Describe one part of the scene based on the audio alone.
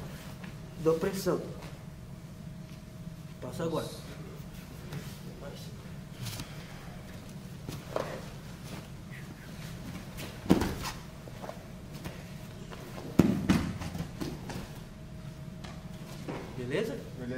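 Fabric rustles as two people grapple.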